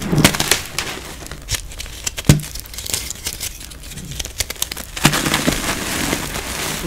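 Crumbly chalky rock cracks and crumbles between hands, close up.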